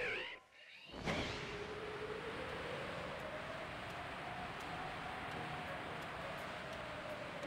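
Wind rushes steadily past a flying bird.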